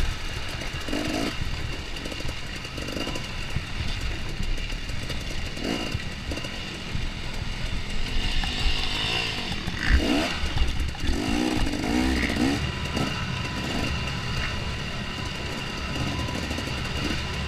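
A dirt bike engine revs and putters close by, rising and falling in pitch.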